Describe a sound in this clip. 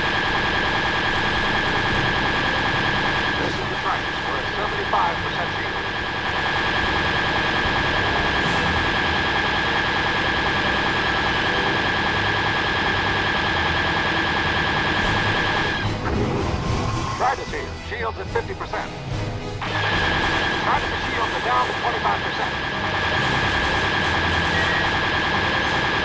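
A starfighter's engine hums steadily.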